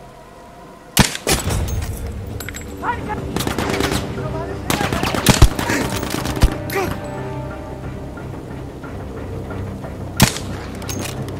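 A rifle fires single loud shots that echo outdoors.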